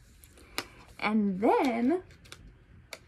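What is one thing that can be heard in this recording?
A young woman speaks briefly and expressively close by.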